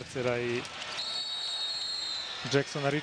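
A referee's whistle blows a long, sharp blast.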